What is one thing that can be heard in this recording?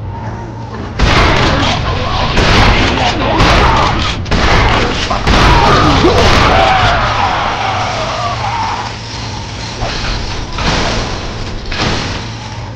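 Explosions boom and crackle as a battle rages.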